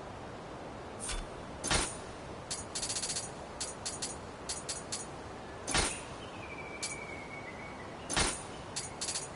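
Short game menu clicks and chimes sound as options are scrolled and selected.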